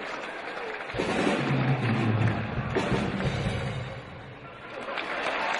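A boy drums loudly on a drum kit and cymbals.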